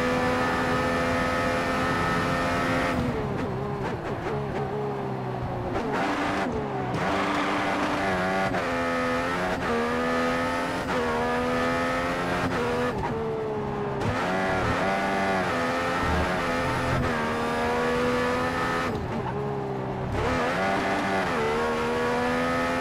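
A racing car engine screams at high revs, dropping in pitch as it brakes and rising again as it speeds up through the gears.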